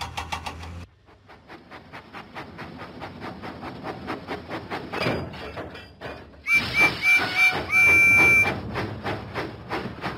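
A small steam engine chuffs steadily along the rails.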